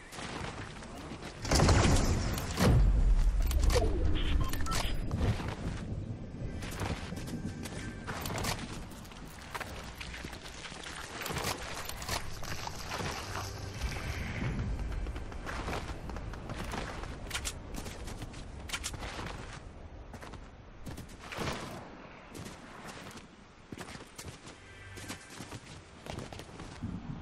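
Footsteps of a game character run quickly over grass and stone.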